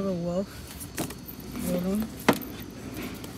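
A paperback book knocks against a shelf as it is set down.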